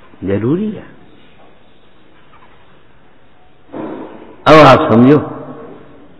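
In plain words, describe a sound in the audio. An elderly man speaks calmly, with pauses between phrases.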